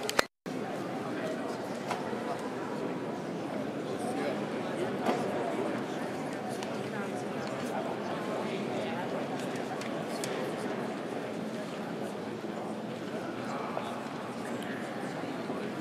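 A seated crowd murmurs and chatters outdoors.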